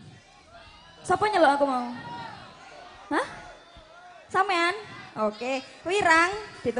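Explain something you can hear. A young woman sings loudly through a loudspeaker system outdoors.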